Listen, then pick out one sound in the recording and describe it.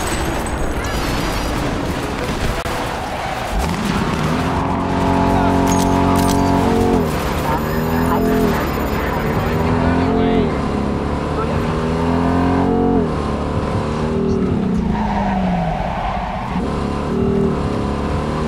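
Car tyres roll over the road with a steady rumble.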